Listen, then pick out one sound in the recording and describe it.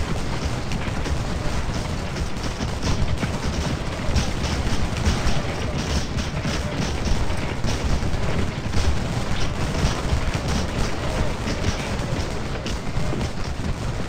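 Rifles fire in a rapid, crackling volley.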